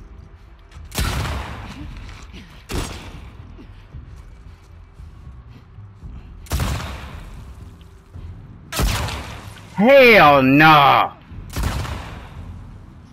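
Gunshots boom loudly several times, each followed by a short echo.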